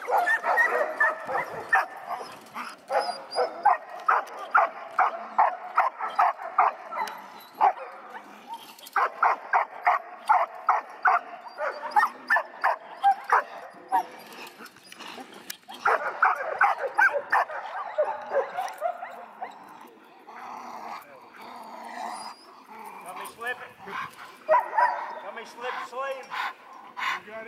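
A dog growls and snarls fiercely while tugging.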